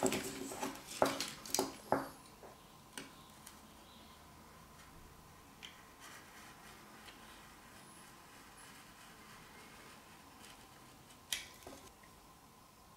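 A knife blade scrapes and clicks against a small piece of wood.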